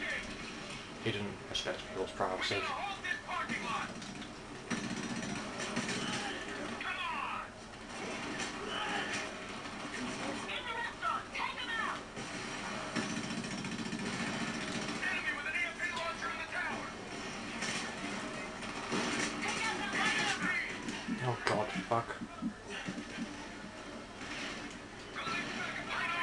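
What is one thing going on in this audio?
Gunfire crackles in bursts through a television speaker.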